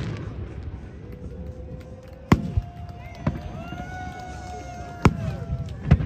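Fireworks whistle as they shoot upward.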